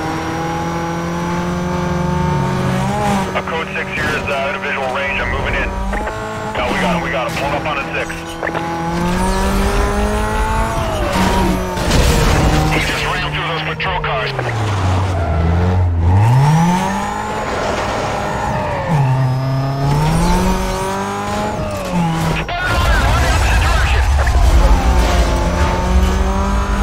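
A sports car engine races at high speed, shifting up through the gears.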